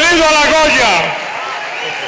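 An elderly man speaks loudly into a microphone.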